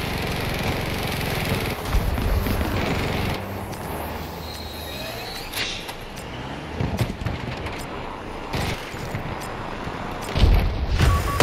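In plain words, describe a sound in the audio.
A tank's engine rumbles as it drives.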